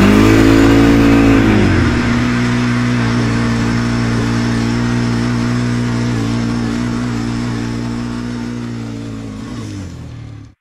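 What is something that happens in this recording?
A motorbike engine revs loudly, then drops to a steady drone.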